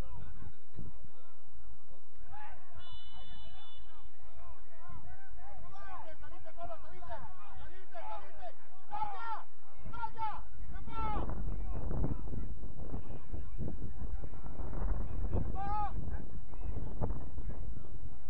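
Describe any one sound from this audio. Young players shout and call to one another across an open field outdoors.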